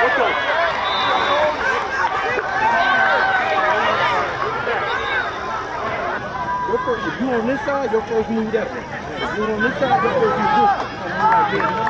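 Many boys and young men shout and call out outdoors.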